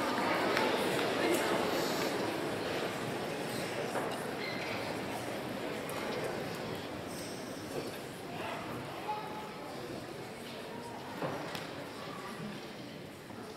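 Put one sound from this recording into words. A school band plays brass and woodwinds in a large echoing hall.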